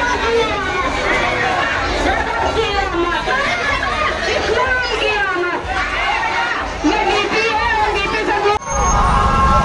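A crowd of men shouts and chants with excitement outdoors.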